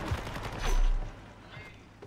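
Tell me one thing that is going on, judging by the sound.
A rifle clicks and rattles while being reloaded.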